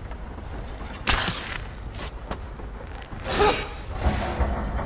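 A bow is drawn and an arrow is shot with a sharp whoosh.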